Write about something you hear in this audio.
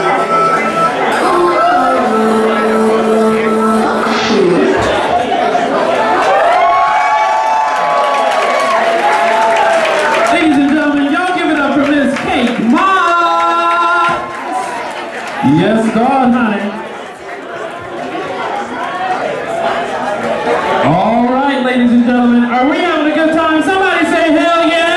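A woman sings loudly through a loudspeaker.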